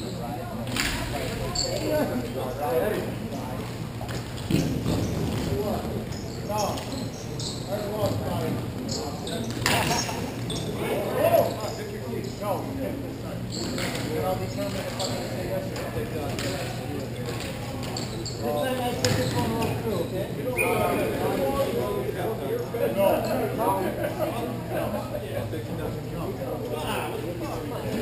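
Young men call out to each other across a large echoing hall.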